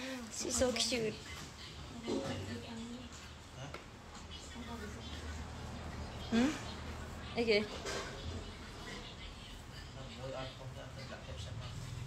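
A young woman talks casually and close by, in short bursts.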